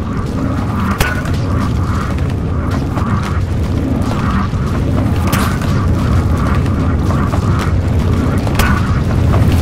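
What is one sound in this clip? A tool gun clicks as it fires.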